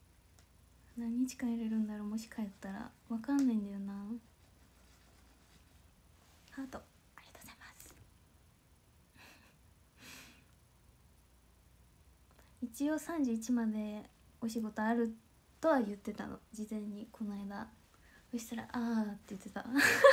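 A young woman talks softly and playfully close to a microphone.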